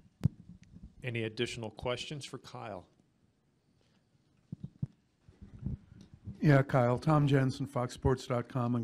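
A young man speaks calmly into a microphone, pausing briefly between phrases.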